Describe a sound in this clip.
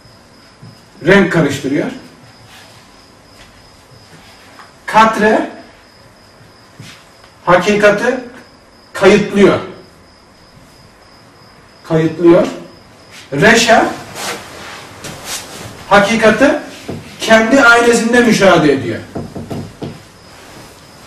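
A man speaks in short bursts, calmly explaining, close by.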